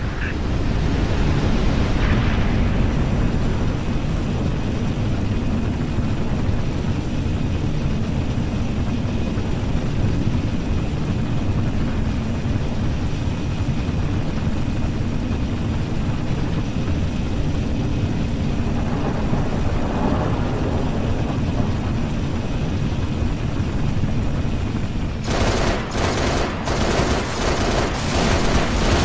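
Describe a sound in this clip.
An aircraft's engines roar steadily as it flies.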